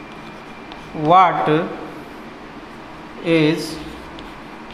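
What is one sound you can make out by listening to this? A man speaks briefly in a loud, drawn-out voice nearby.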